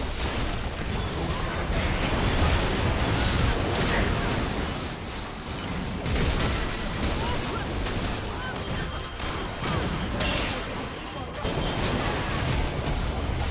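Spells and weapons clash and explode in a game battle.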